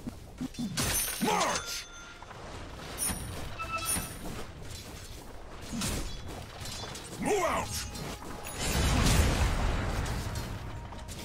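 Video game spells and attacks crackle and whoosh.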